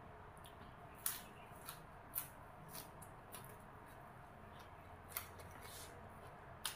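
A woman chews food with wet smacking sounds close to the microphone.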